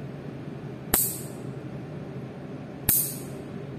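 Nail clippers snap sharply, cutting a fingernail up close.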